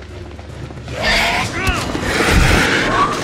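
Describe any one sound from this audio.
A creature shrieks as it lunges.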